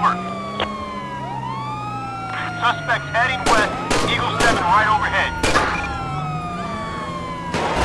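A police siren wails with a falling and rising pitch.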